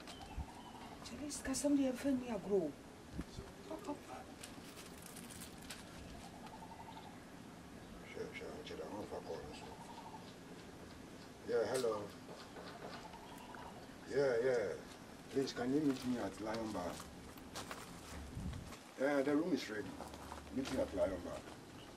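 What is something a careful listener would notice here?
A middle-aged woman speaks nearby.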